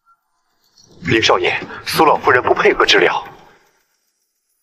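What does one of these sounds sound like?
A young man talks on a phone.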